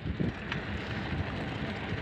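A bicycle rolls by on a paved road.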